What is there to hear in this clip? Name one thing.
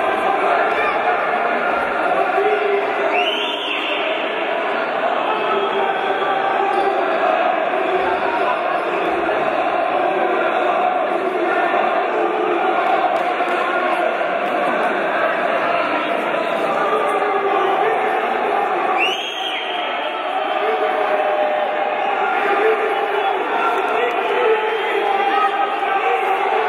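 A crowd of spectators murmurs and cheers steadily in a large echoing hall.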